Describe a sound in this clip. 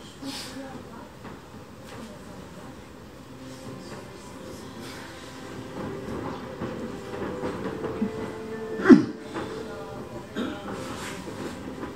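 Stiff fabric rustles as a kneeling man bows and sits up.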